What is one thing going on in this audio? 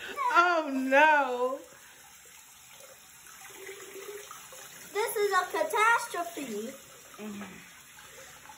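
A young child cries out loudly in a wavering, high voice close by.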